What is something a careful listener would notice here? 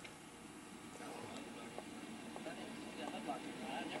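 A man talks outdoors, heard faintly through a television speaker.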